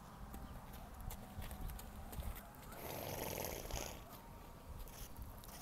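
A horse's hooves thud softly on dry ground.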